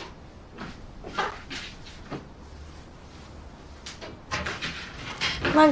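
Footsteps clank on a metal bunk ladder.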